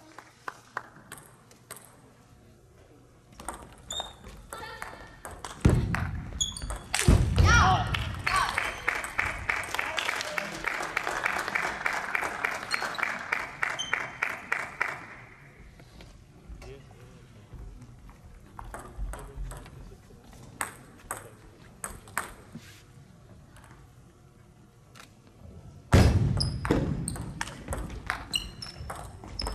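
A table tennis ball clicks back and forth on paddles and a table in a large echoing hall.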